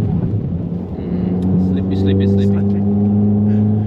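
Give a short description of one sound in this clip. A man speaks briefly and with animation inside a car.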